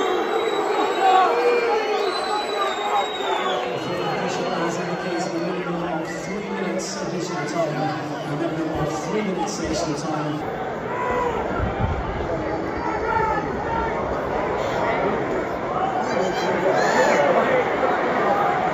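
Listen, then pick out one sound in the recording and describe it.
A large stadium crowd murmurs, chants and cheers outdoors.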